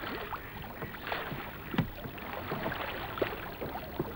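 Oars splash rhythmically in water.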